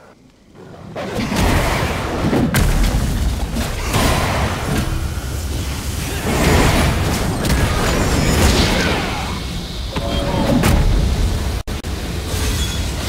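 Game spells whoosh and crackle in bursts during a fight.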